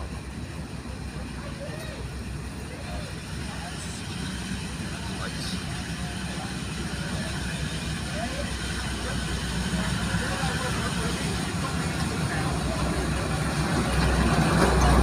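A diesel locomotive approaches with a deep rumbling engine, growing louder.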